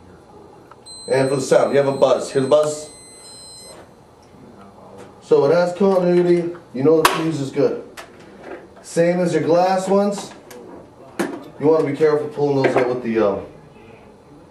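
A man talks calmly and explains, close by.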